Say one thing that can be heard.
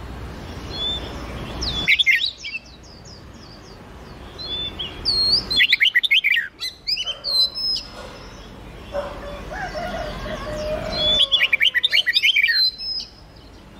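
Songbirds sing loud, quick whistling phrases in bursts.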